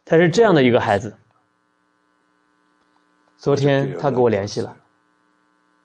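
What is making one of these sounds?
A middle-aged man speaks calmly into a microphone in short phrases.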